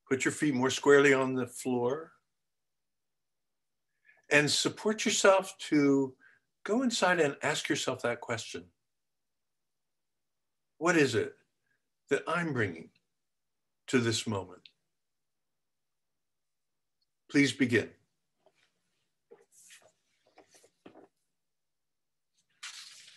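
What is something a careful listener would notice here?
An elderly man speaks calmly over an online call, in short phrases with pauses.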